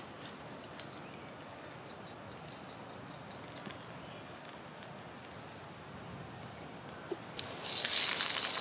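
A fire crackles softly under a pan.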